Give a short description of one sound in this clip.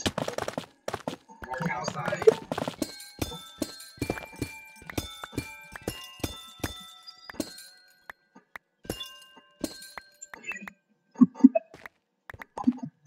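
Blocks of stone break with quick, sharp cracks under a pickaxe.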